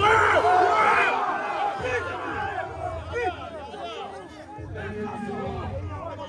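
A large crowd shouts and cheers outdoors.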